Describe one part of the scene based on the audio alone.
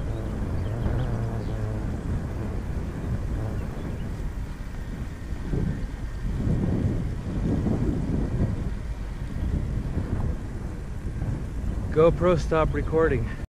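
Wind rushes and buffets steadily while moving along a road.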